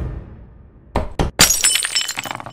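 Darts thud one after another into a hard surface.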